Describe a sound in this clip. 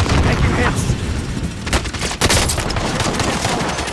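An explosion booms nearby.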